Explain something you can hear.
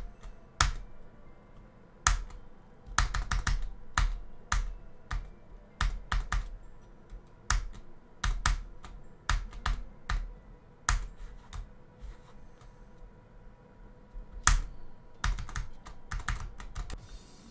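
Electronic game music plays with sharp, punchy beats.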